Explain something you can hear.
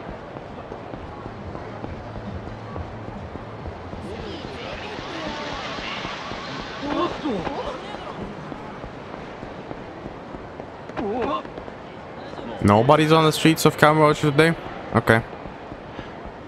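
A crowd murmurs in a busy street.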